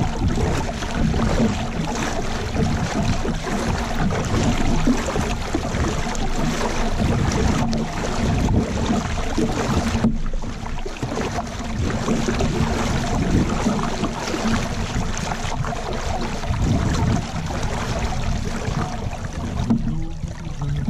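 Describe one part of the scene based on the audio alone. A paddle splashes rhythmically through water.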